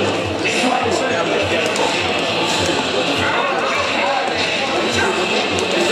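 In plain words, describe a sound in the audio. Punches and kicks thud during a video game fight.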